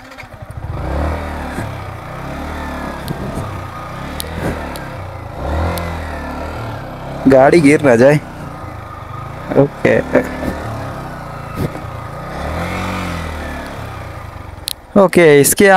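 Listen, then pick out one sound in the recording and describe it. A motorcycle engine idles with a low, uneven rumble.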